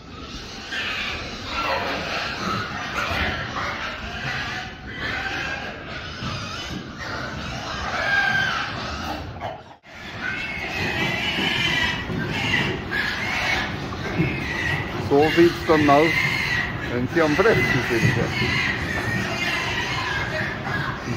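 Many pigs grunt and squeal close by.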